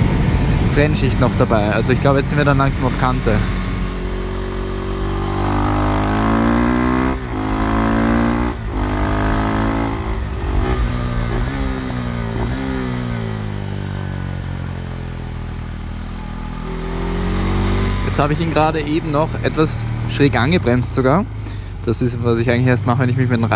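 A motorcycle engine revs up and down loudly.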